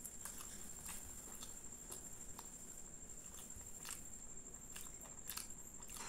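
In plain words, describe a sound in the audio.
Fingers tear soft flatbread close to a microphone.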